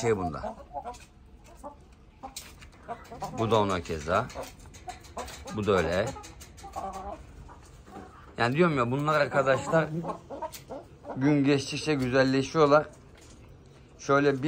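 Hens cluck close by.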